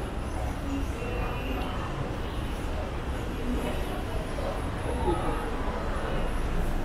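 Distant voices murmur faintly across a large echoing hall.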